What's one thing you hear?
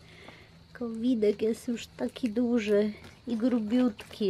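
A raccoon chews and crunches food.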